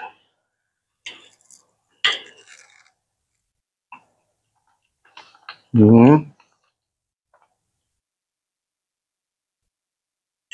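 A fork scrapes against a plate.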